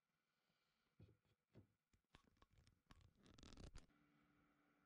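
Pieces of wood knock and tap against each other on a wooden bench.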